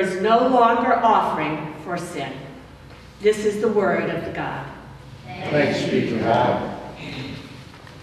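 A woman sings into a microphone in a large echoing hall.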